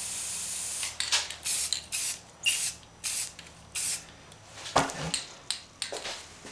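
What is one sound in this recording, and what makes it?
A spray can rattles as it is shaken.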